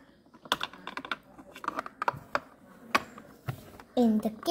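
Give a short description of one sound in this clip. Plastic toy pieces click and knock as hands move them.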